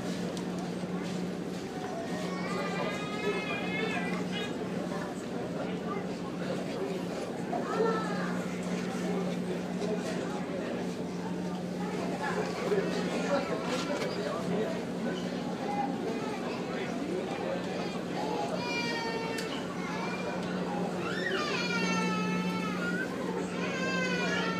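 An engine hums steadily.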